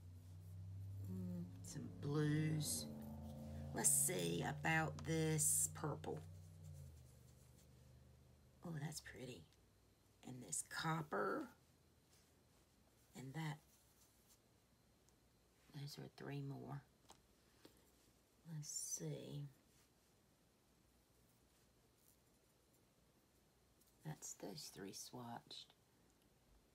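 A woman speaks calmly and close by, in short bursts with pauses.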